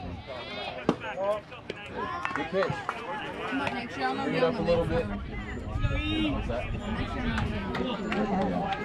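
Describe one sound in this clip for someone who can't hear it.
Children and adults shout and cheer nearby outdoors.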